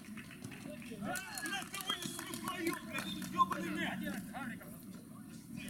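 Several men shout and cheer outdoors.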